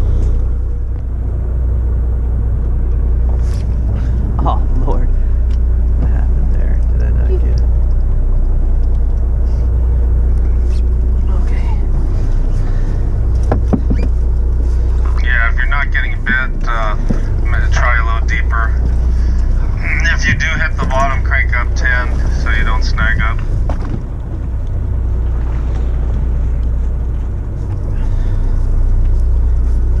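Waves slosh against a boat's hull.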